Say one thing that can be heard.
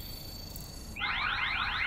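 An alarm keypad beeps rapidly with rising tones.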